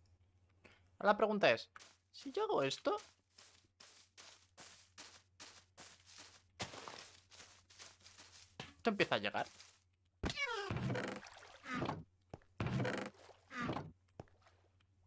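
A young man talks with animation into a microphone, close up.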